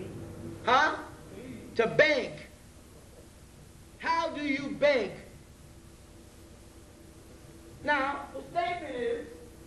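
A man speaks forcefully into a microphone over a loudspeaker, in bursts with pauses.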